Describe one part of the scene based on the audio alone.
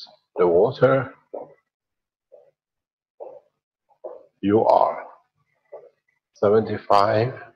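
A middle-aged man speaks calmly in a lecturing tone, with short pauses.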